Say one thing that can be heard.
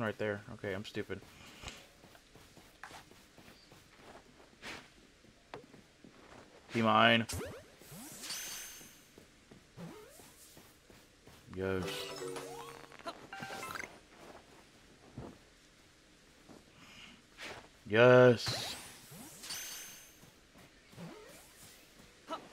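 Footsteps run quickly across grass and sand.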